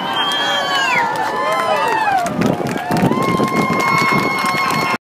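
Fireworks crackle and pop overhead.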